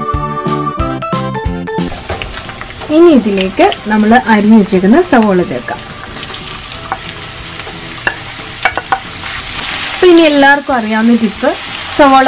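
Vegetables sizzle in a hot pan.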